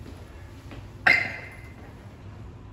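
An elevator chimes.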